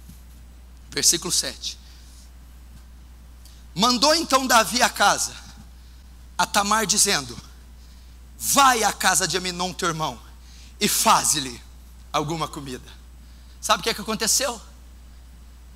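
A man speaks with animation through a microphone in an echoing hall, pausing between phrases.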